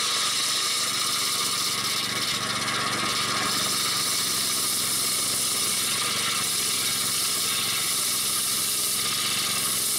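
A small engine roars steadily.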